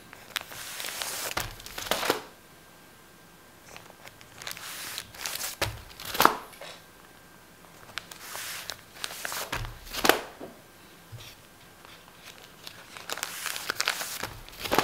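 Newspaper pages rustle and slap as a hand flips through a stack of papers.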